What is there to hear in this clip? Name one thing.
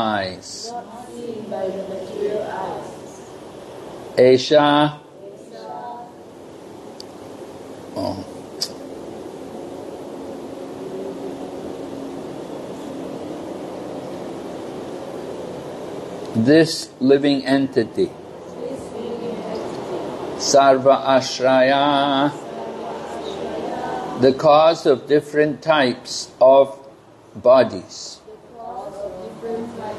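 An elderly man chants slowly into a microphone in a large echoing hall.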